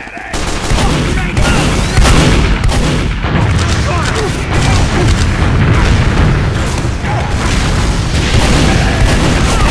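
Shotgun blasts fire in quick bursts.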